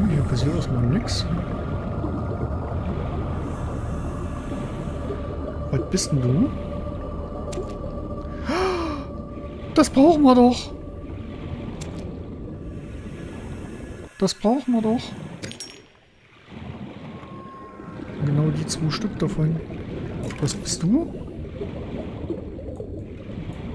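A low underwater rumble drones steadily.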